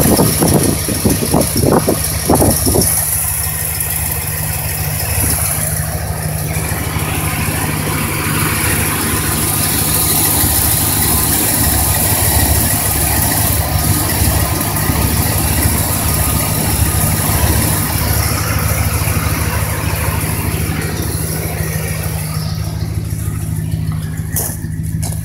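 A car engine idles steadily with a low, even hum.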